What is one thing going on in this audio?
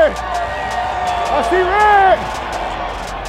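A crowd of fans cheers and shouts loudly.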